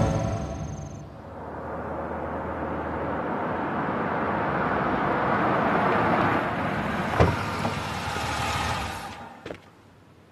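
A car engine hums as a car drives up and stops.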